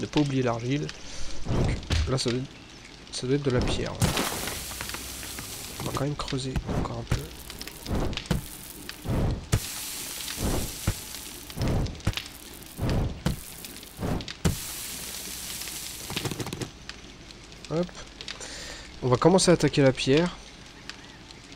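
A young man talks calmly and close into a microphone.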